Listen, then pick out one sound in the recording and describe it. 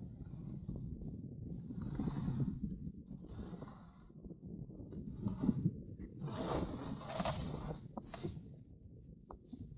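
Wind rushes past close by in gusts.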